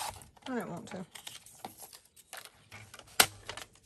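A paper trimmer blade slides and cuts through card.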